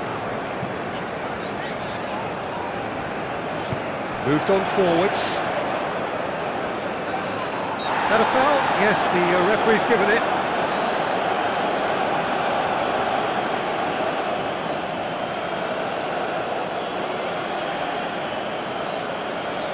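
A large stadium crowd roars steadily, swelling for a while.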